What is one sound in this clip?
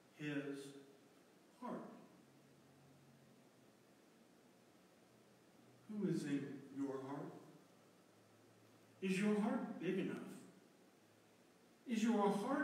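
An elderly man speaks slowly and calmly, with pauses, in a room with a slight echo.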